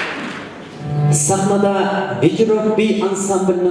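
A man speaks loudly into a microphone, heard over loudspeakers in a large echoing hall.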